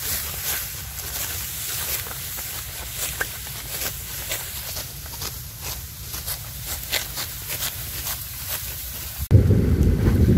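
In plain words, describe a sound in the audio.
Sickles cut through dry rice stalks with crisp, rustling crunches.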